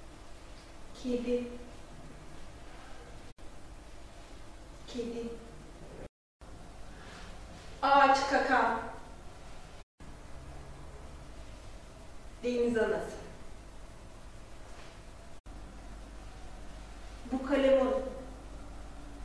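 A young woman says short words clearly, with long pauses between them.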